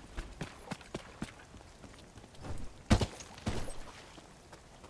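Footsteps splash through shallow water.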